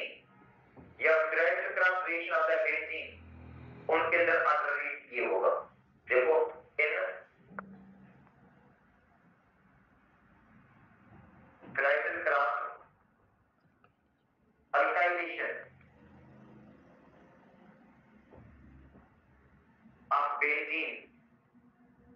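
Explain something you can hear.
A middle-aged man speaks calmly into a headset microphone, pausing often.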